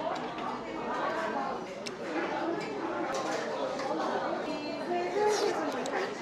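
Chopsticks click against a metal bowl.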